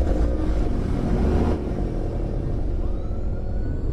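A car alarm chirps as a car locks.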